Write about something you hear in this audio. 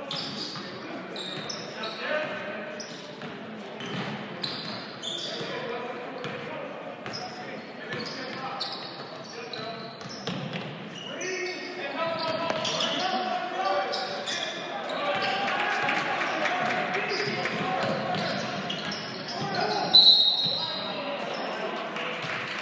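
A crowd in a large echoing gym cheers and talks.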